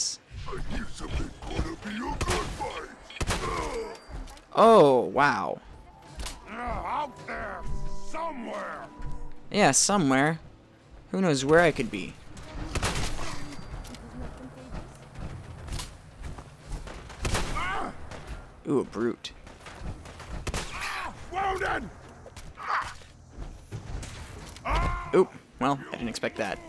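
A shotgun fires repeatedly.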